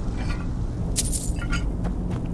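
Coins clink briefly.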